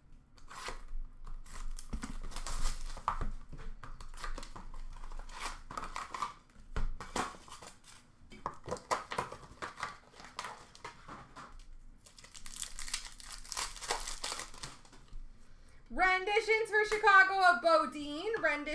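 Paper card packs rustle and tap as hands sort through them.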